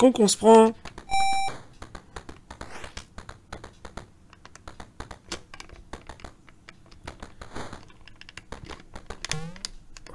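Retro video game sound effects beep and click.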